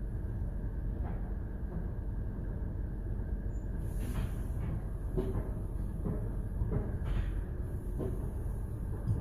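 Car wash brushes slap and thump against the car.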